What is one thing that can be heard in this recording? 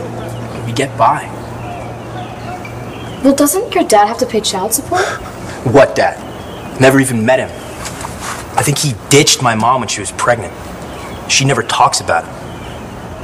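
A young man speaks earnestly, close by.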